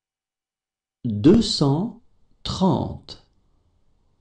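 A man clearly reads out a number close to a microphone.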